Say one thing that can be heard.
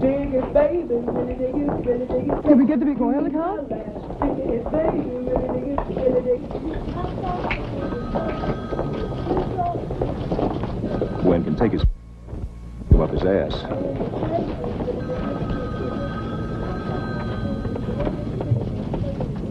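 Footsteps cross a hard floor.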